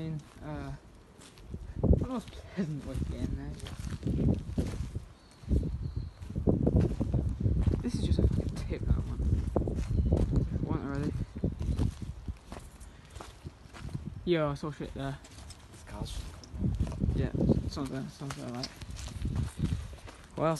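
A young man talks casually close by.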